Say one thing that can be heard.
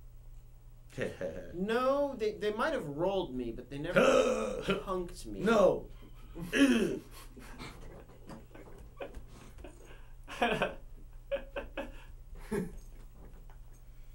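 A man talks with animation nearby.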